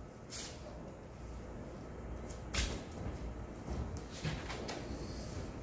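A large sheet of paper rustles and crinkles as it is handled.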